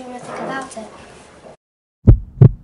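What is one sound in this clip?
A young girl speaks calmly and close by.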